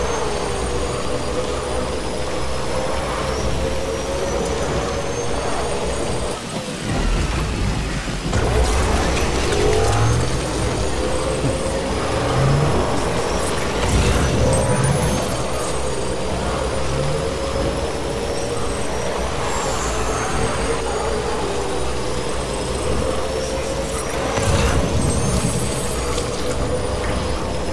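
An electric motorcycle whines as it rides along a road.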